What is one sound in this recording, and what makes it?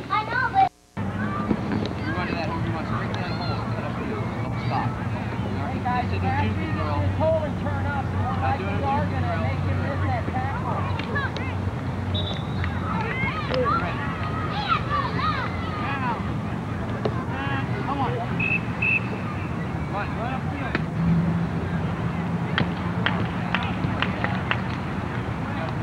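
Children and men talk and call out at a distance outdoors.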